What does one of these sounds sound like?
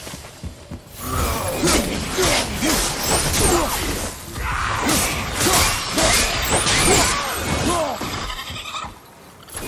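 A creature shrieks and groans under blows.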